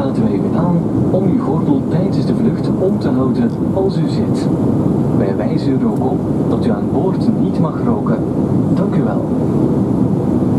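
Passengers murmur and chatter nearby.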